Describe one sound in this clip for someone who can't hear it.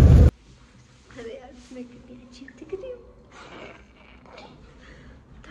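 A young woman speaks quietly and calmly close by in a quiet room.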